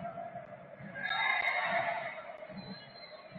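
A stadium crowd briefly cheers loudly.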